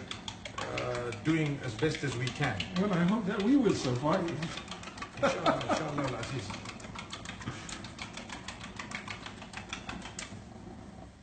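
A fork beats eggs, clinking rapidly against a plate.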